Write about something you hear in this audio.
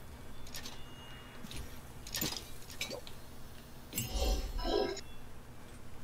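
A chest creaks open.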